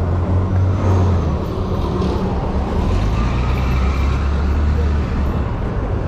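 A city bus rumbles past with a deep engine drone.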